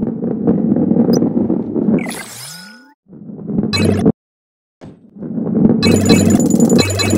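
A ball rolls with a low rumble.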